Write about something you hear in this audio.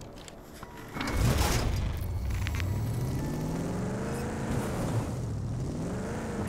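A car engine starts and revs, rising and falling in pitch.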